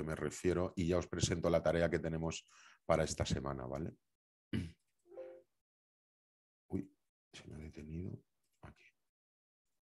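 A middle-aged man speaks calmly over an online call, in short bursts with pauses.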